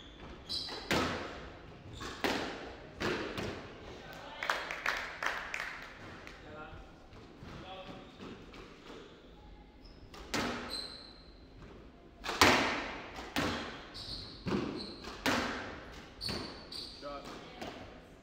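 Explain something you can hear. A squash ball smacks hard against the walls, ringing in a small echoing court.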